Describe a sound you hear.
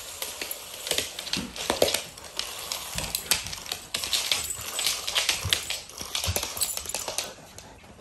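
A toy snake rattles as it slithers across the floor.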